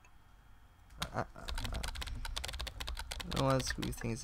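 Computer keys click rapidly as a young man types.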